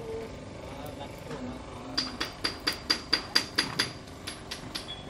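A metal rod clinks and taps against metal parts.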